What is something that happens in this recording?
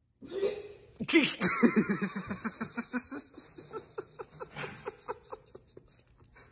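A man laughs heartily close to the microphone.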